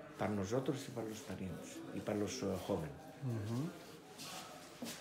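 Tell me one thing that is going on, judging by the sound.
An elderly man speaks casually close by.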